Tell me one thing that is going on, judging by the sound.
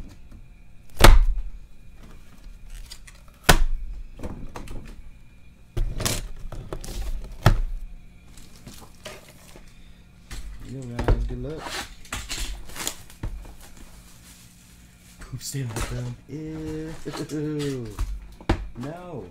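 A cardboard box thumps and rustles as it is handled.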